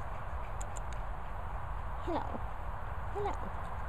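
A dog pants heavily close by.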